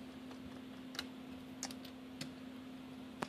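A toggle switch clicks a few times.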